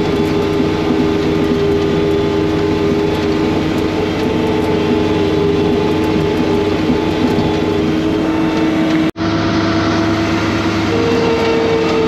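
Snow hisses and sprays from a snow blower's chute.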